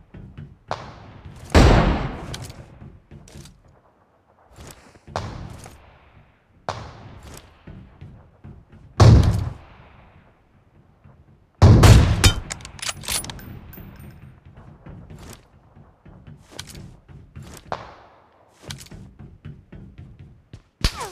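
Gunshots fire loudly and echo away.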